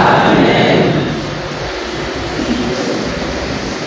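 A man speaks through a microphone and loudspeakers in an echoing hall.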